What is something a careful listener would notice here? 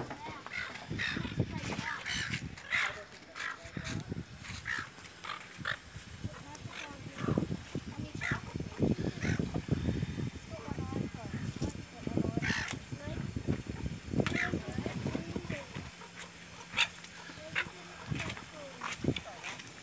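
A sea lion barks loudly up close.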